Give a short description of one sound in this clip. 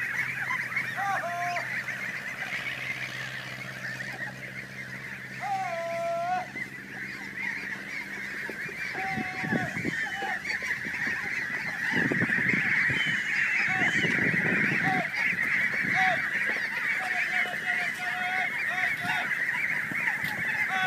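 A huge flock of ducks quacks noisily and without pause.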